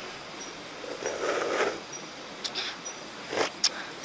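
A young woman slurps soup from a spoon close by.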